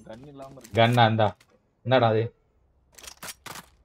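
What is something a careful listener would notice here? A gun is drawn with a short metallic click.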